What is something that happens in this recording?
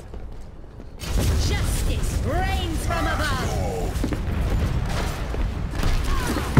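Gunfire and energy blasts crackle in a fast fight.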